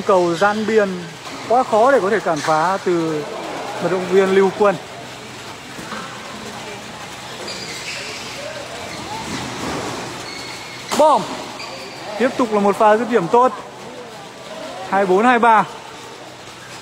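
A man calls out loudly nearby in short bursts.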